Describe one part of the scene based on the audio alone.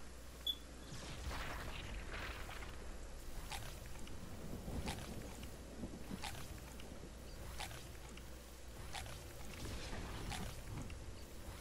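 A game character searches a chest with a rising shimmering sound.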